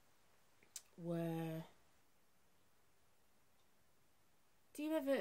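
A middle-aged woman speaks briefly and calmly, close by.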